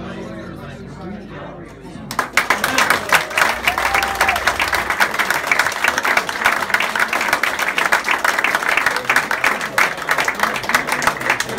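A live band plays music in a room.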